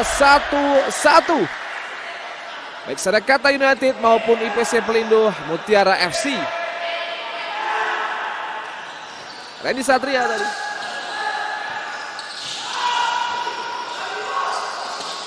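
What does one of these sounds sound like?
A crowd cheers and chants in a large echoing hall.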